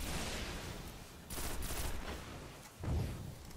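Gunfire crackles in short rapid bursts.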